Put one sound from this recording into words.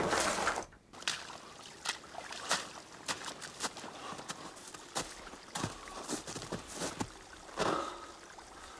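Footsteps crunch through snow and snap twigs close by.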